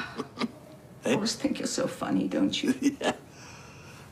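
An elderly man laughs heartily on the phone.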